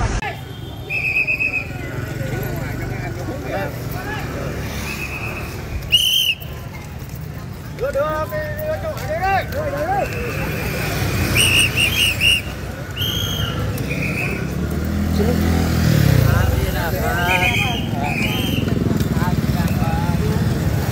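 A crowd of people murmurs and talks outdoors.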